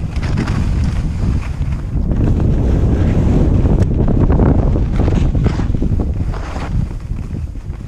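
Skis carve and scrape over hard snow in quick turns.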